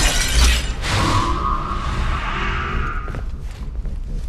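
A bowstring twangs as an arrow is shot, followed by a ringing whoosh.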